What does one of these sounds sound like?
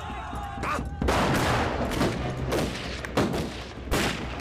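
Rifle shots crack loudly, one after another.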